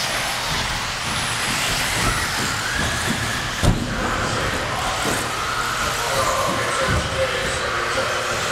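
Model car tyres rattle and clatter over bumps and landings.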